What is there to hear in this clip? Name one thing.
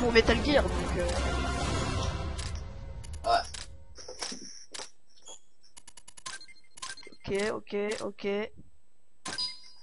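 Short electronic clicks tick as a game's scores count up.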